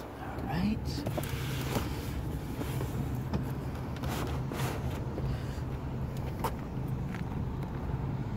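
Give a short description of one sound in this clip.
Padded envelopes rustle and bump in a plastic tray as it is carried.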